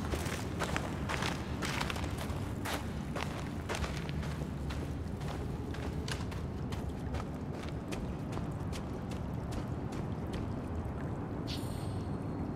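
Footsteps crunch quickly over snow and then clank on metal.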